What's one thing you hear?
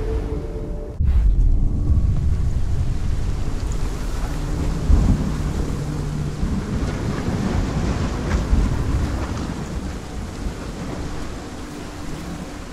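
Rain pours down outdoors in a storm.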